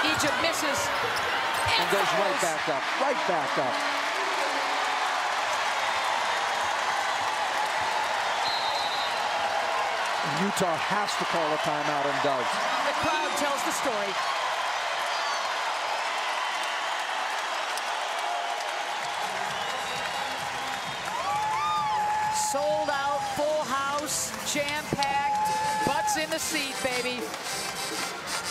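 A large crowd cheers and claps loudly in an echoing arena.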